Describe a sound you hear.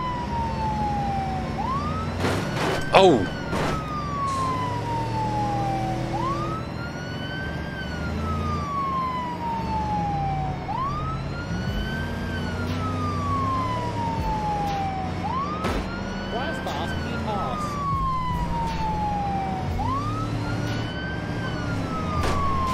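A police siren wails up and down over and over.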